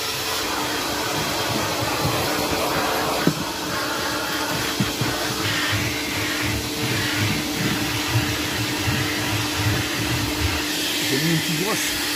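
A vacuum nozzle scrapes over carpet.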